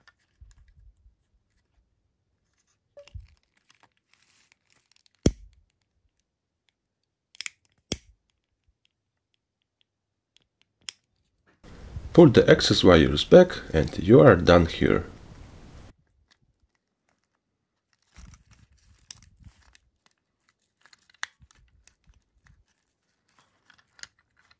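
Plastic parts click and tap as they are handled.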